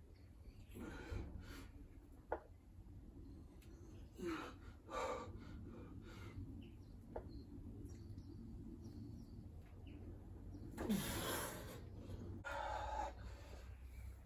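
A man breathes out hard with effort.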